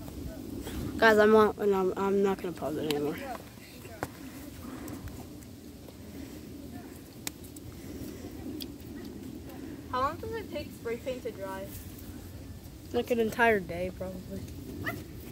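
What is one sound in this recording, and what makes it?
A young boy talks loudly nearby.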